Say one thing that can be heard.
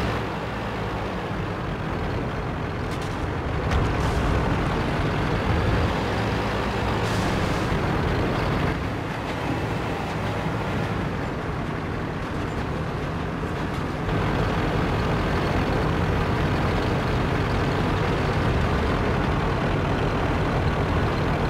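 A tank engine rumbles steadily as the tank drives along.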